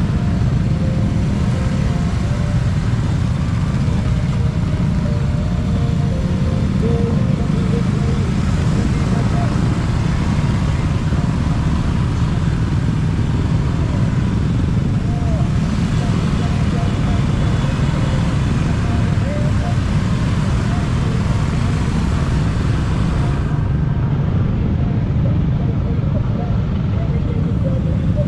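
Wind buffets the microphone of a moving scooter.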